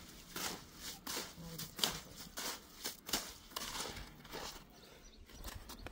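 A trowel scrapes and scoops wet cement.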